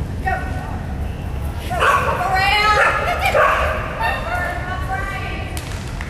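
A dog barks and yelps excitedly in a large echoing hall.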